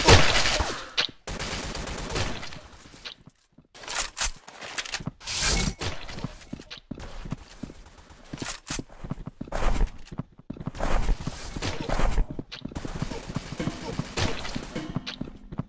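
Automatic gunfire rattles in short bursts.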